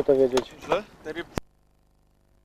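Water splashes as a swimmer moves close by.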